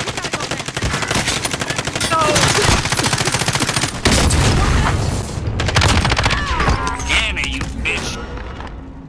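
Gunfire rattles in rapid, loud bursts.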